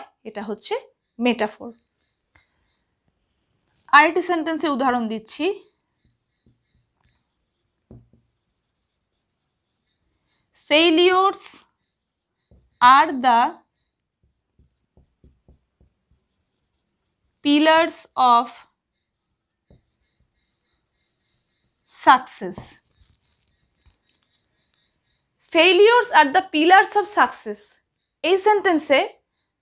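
A woman speaks calmly and clearly in short phrases, close by.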